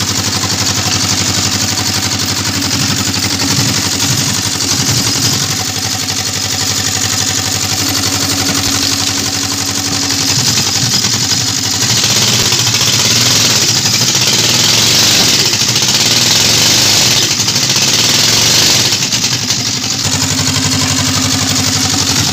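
A machine engine drones loudly and steadily.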